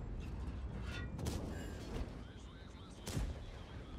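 A tank cannon fires with a sharp boom.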